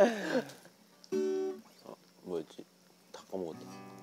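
A guitar is strummed briefly.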